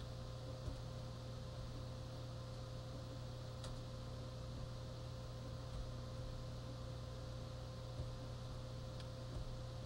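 A fire effect roars steadily through a television speaker.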